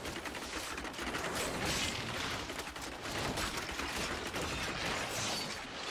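Magic bolts whoosh and zap.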